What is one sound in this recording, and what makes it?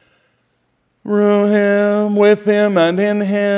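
A middle-aged man chants in a loud, sustained singing voice through a microphone.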